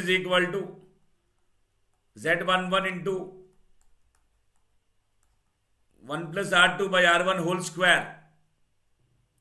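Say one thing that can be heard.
A man speaks calmly into a close microphone, explaining in short bursts.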